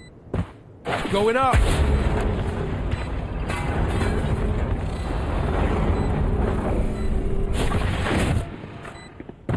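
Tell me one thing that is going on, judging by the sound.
A wall of fire roars steadily and then dies away.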